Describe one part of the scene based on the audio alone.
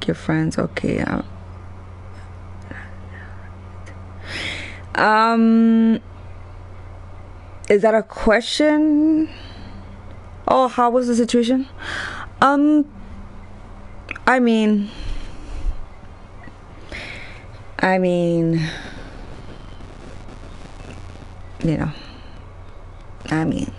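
A young woman talks animatedly into a close microphone, stretching out some words in a sing-song way.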